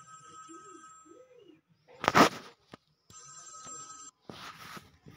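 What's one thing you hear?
A phone rings with a repeating electronic ringtone.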